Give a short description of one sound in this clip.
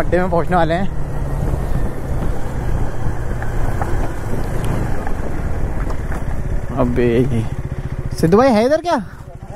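A motorcycle engine rumbles steadily.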